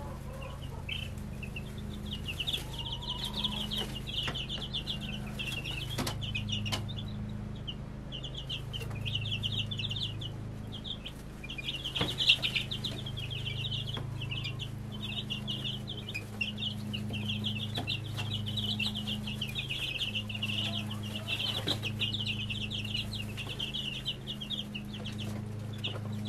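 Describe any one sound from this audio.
Many chicks peep constantly at high pitch.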